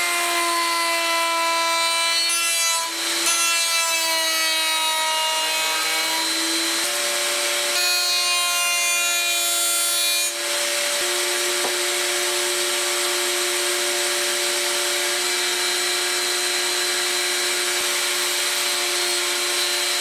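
A router whines loudly and steadily throughout.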